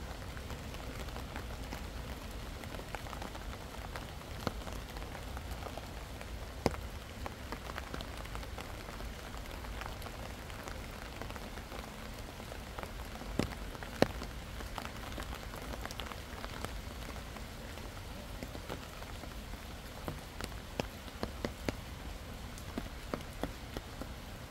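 Rain falls steadily outdoors, with drops pattering and tapping nearby.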